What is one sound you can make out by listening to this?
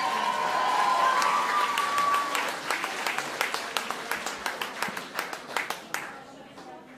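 An audience claps and cheers.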